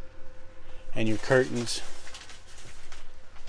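A plastic shower curtain rustles and crinkles.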